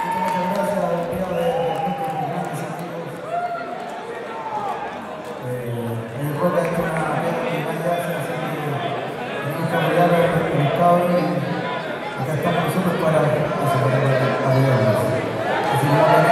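Electric guitars strum and ring out.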